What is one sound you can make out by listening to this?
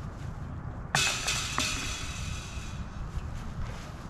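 A disc clatters into metal chains.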